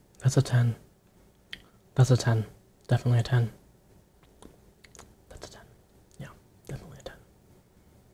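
A young man speaks softly in short bursts, very close to a microphone.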